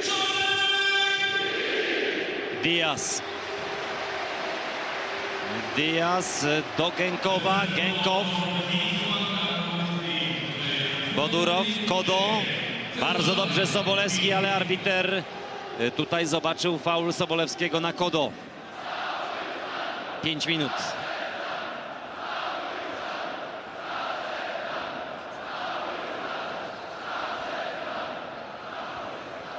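A large crowd chants and roars steadily in an open stadium.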